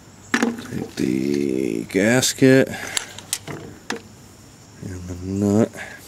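A ratchet wrench clicks as it turns.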